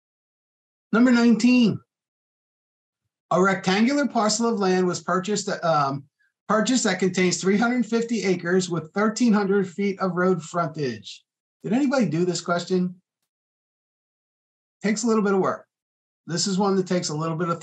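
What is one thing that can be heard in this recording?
A man speaks calmly into a close microphone, explaining in bursts with pauses.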